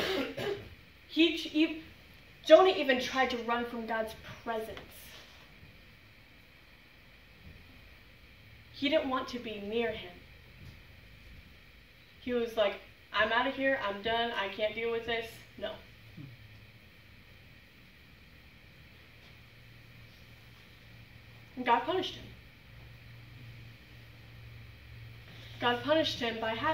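A young woman speaks with animation into a microphone, pausing between phrases.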